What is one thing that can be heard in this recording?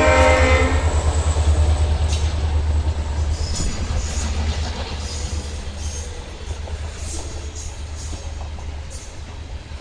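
A diesel locomotive engine rumbles deeply as it passes, slowly fading.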